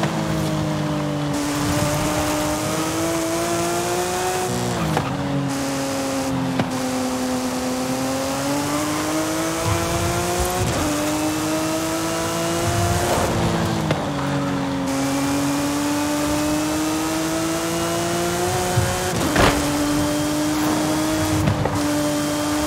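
Tyres hiss on asphalt at speed.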